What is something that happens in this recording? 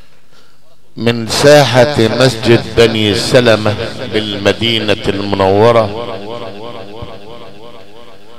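A man chants a melodic recitation over loudspeakers, echoing in the room.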